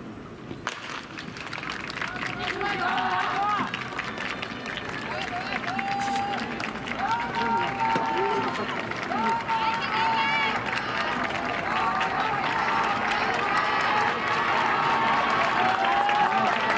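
A crowd of spectators cheers and shouts, growing louder.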